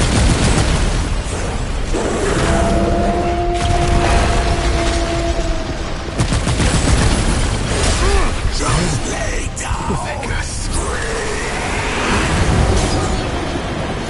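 Gunfire cracks and booms in rapid bursts.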